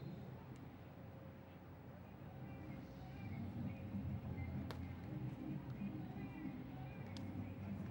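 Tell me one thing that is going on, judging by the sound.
A crowd murmurs outdoors in the distance.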